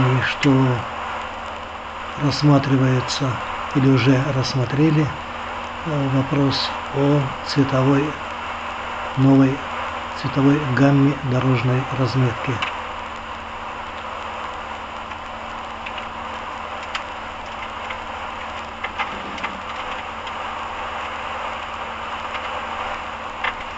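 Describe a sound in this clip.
A car engine hums steadily while driving fast.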